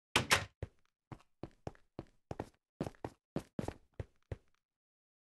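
Footsteps tap on a hard floor at a quick, uneven pace.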